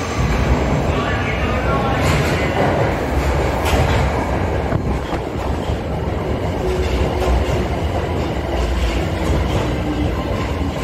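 Train brakes squeal faintly.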